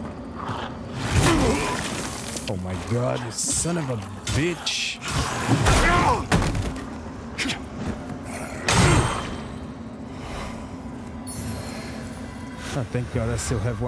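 Blades slash and strike with heavy impacts.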